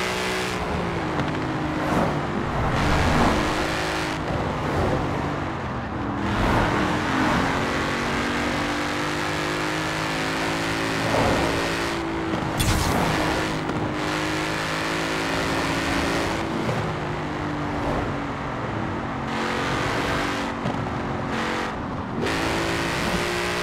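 A sports car engine roars loudly at high speed, its pitch rising and falling with gear changes.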